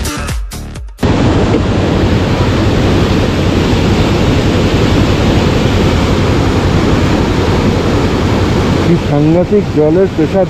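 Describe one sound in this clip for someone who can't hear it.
A rushing stream roars loudly below.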